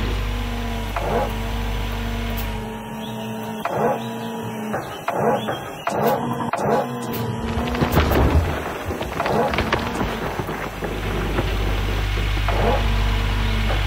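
Dirt and gravel scrape and rumble as an excavator bucket digs.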